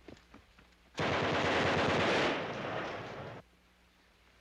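A submachine gun fires a rapid burst.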